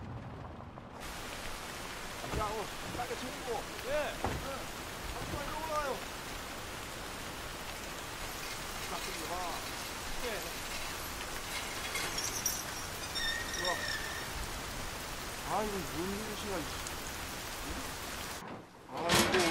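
Steady rain patters down outdoors.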